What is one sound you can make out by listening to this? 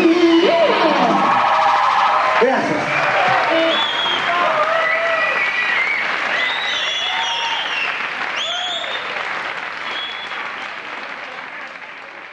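A synthesizer plays bright, gliding lead notes.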